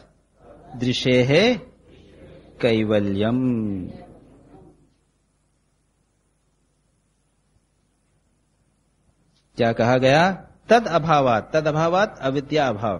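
An elderly man speaks calmly, as if giving a lecture.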